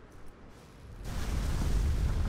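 A fire hose sprays water with a loud hiss.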